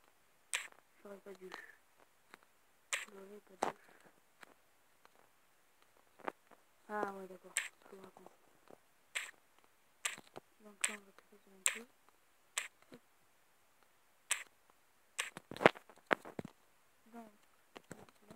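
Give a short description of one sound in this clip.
A young boy speaks quietly in short bursts, close to the microphone.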